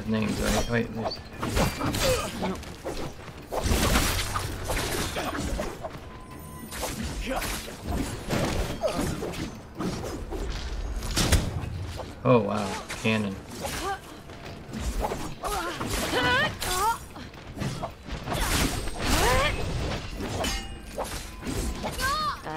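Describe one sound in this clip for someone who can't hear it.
A man talks with animation close to a microphone.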